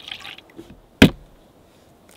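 An egg cracks sharply against a bowl's rim.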